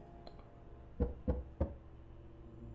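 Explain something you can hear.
Knuckles knock on a wooden door three times.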